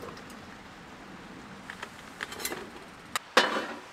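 Food sizzles quietly in a metal pan.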